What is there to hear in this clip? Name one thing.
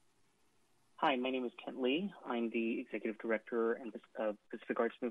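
A woman speaks steadily over a phone line.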